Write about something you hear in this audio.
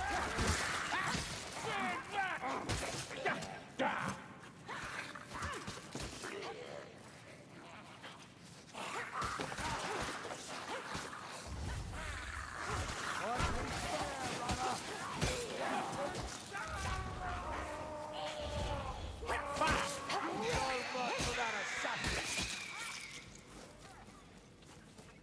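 A heavy blade chops into flesh with wet, thudding hits.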